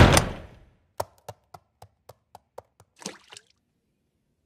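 Light footsteps tap quickly across a floor.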